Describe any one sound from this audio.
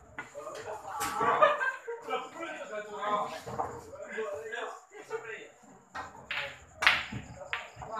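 Pool balls clack together on a table.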